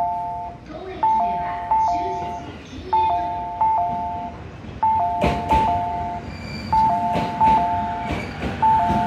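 An electric commuter train pulls into the platform.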